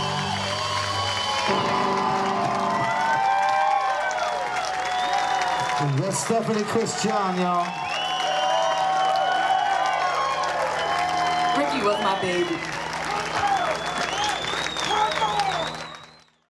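A man sings through a microphone.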